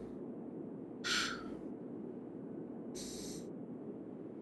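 A metal hammer clanks against rock.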